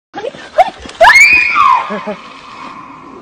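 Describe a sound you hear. A young woman shrieks with excitement close by.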